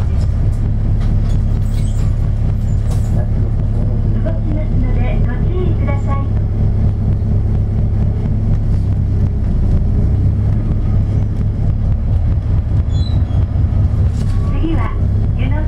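Cars pass close by on the road.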